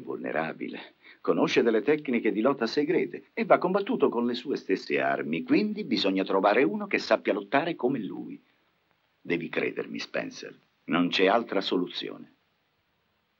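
An elderly man speaks forcefully and with emotion, close by.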